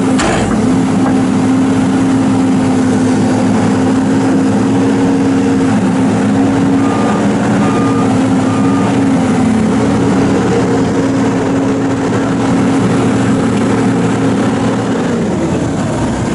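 A heavy diesel engine hums steadily close by.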